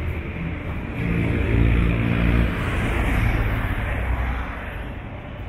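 A bus drives past close by with a low engine rumble.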